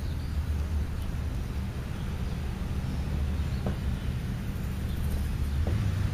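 A bird pecks at scraps of food in the grass.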